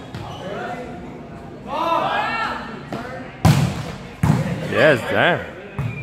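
A ball thumps on a hard floor in an echoing hall.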